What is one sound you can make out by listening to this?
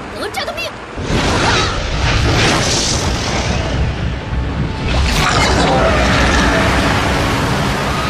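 A loud rushing whoosh sweeps through the air.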